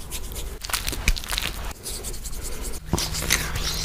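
Fingers rub foamy cleanser over a face, squelching.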